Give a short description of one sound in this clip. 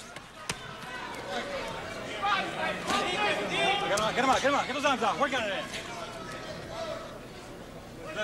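A crowd murmurs in a large arena.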